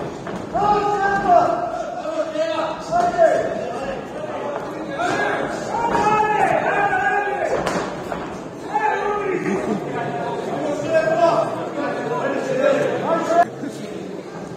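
A crowd in a large echoing hall shouts and cheers.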